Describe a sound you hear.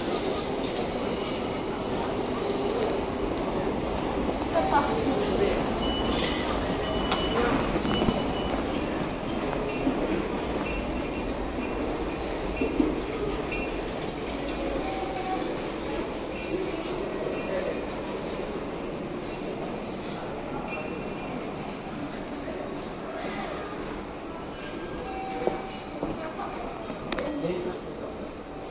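A large echoing hall hums with a steady murmur of distant voices.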